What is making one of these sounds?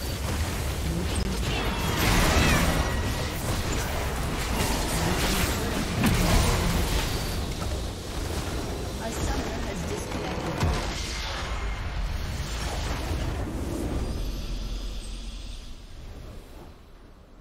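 Magic blasts and clashing spell effects crackle in a busy video game battle.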